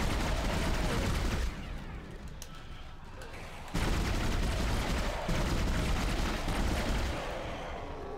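A weapon fires short bursts of energy shots.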